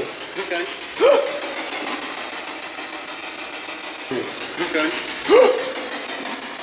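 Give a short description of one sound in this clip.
A young man gasps in alarm.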